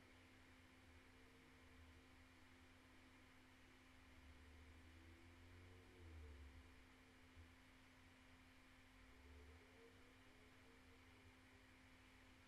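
A young woman hums softly close to a microphone.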